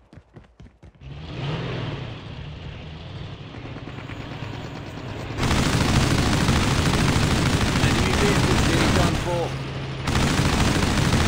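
A vehicle engine rumbles loudly.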